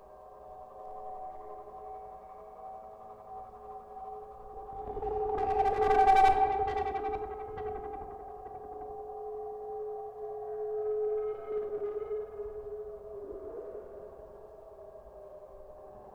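An electronic instrument hums a steady droning tone that swells loud and then slowly fades.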